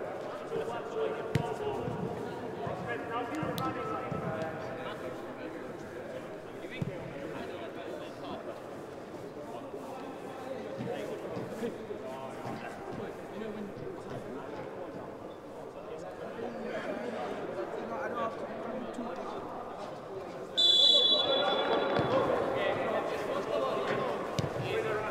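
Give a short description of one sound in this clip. Players shout to each other across a large echoing hall.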